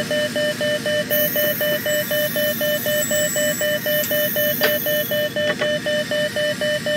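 A train rolls steadily along the tracks.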